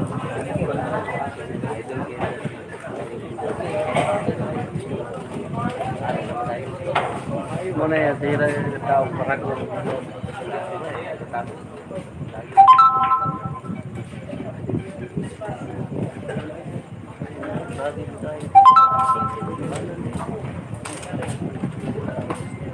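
Men and women chatter in a room nearby.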